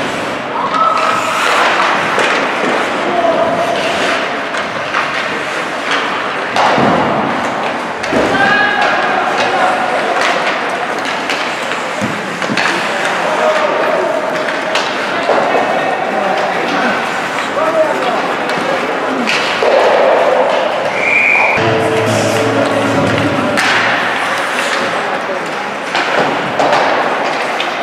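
Young players shout to each other across an echoing rink.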